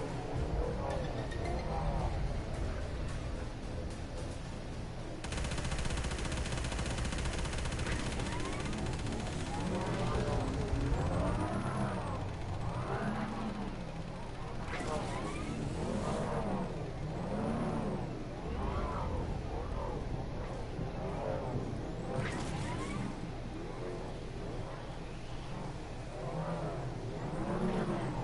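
A hoverboard engine hums and whirs steadily.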